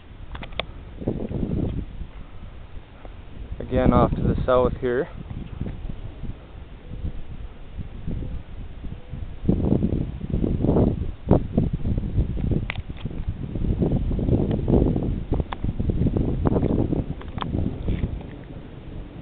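Strong wind gusts roar and buffet outdoors.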